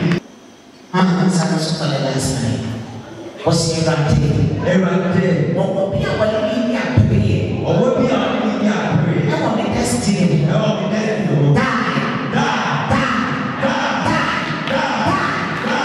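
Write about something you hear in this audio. A woman preaches loudly and with fervour through a microphone.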